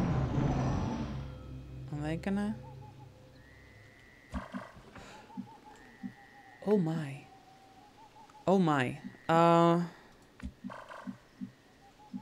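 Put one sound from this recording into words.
A young woman speaks casually into a nearby microphone.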